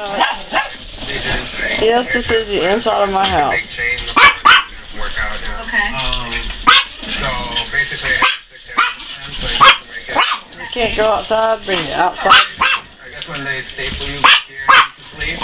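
Dry leaves rustle and crackle as small dogs walk through them.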